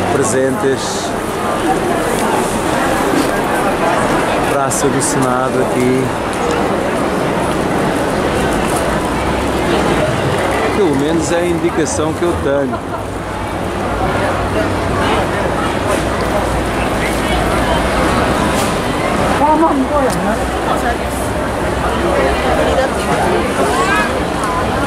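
A crowd of men and women chatters all around outdoors.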